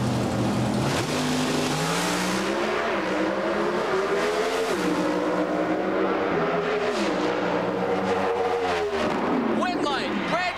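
Race car engines roar away at full throttle, rising in pitch with each gear change.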